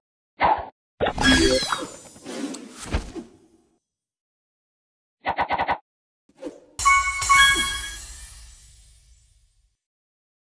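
A cheerful game jingle plays for winning a level.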